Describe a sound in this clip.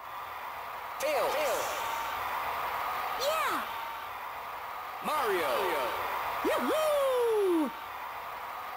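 Whooshing sound effects swoop up and down in pitch.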